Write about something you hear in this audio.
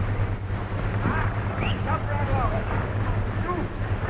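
Dogs yelp and bark excitedly.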